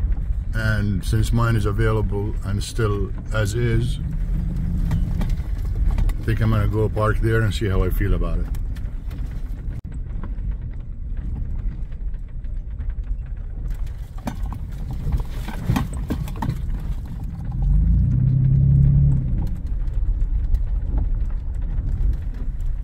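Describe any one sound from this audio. A pickup truck engine rumbles as the truck drives along.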